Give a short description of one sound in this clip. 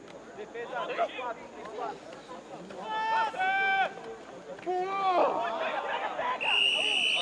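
Young men shout across an open field outdoors.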